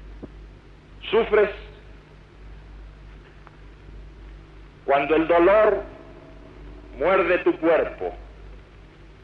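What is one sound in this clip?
A man speaks loudly in short bursts.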